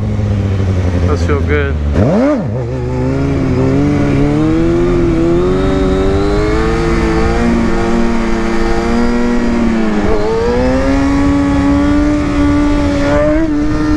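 A motorcycle engine revs up and down loudly close by.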